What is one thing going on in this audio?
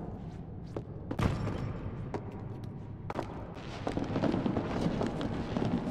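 Small footsteps crunch and rustle over a heap of loose debris.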